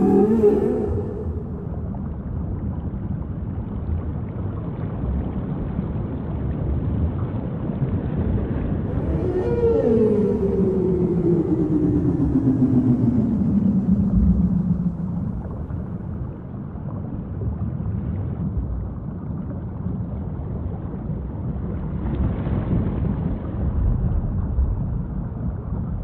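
Water rumbles and rushes steadily underwater.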